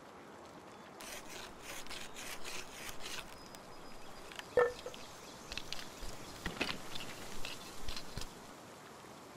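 Quick light taps and knocks of crafting by hand come in bursts.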